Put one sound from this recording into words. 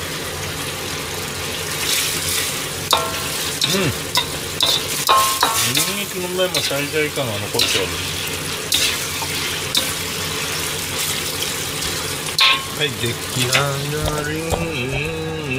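Food sizzles and hisses in a hot wok.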